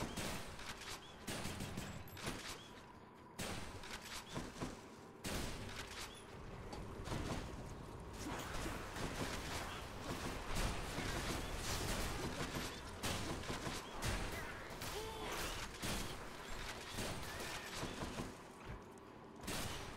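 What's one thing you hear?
Game combat sounds clash and whoosh with sharp hits.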